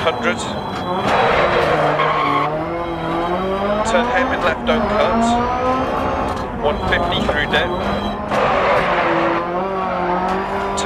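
Gravel sprays and rattles under the car's tyres.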